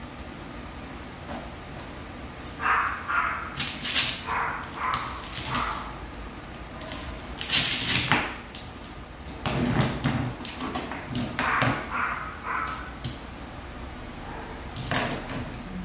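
Scissors snip through a dog's fur.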